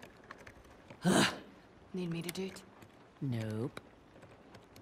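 A young woman grunts and mutters with effort, close by.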